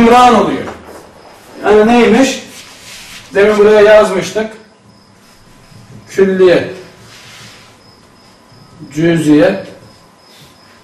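A man speaks calmly in short phrases, close by.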